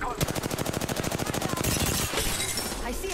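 A burst of rapid automatic gunfire rattles loudly.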